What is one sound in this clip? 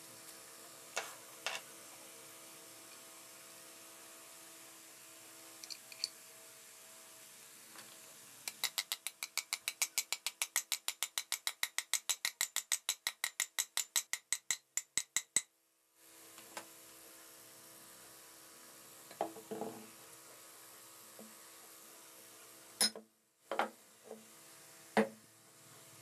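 Metal parts knock and clank against each other on a table.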